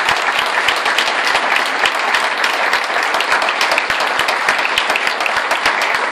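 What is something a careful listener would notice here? A man claps his hands in quick, steady applause.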